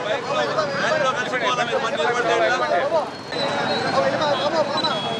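A crowd of people murmurs in the background.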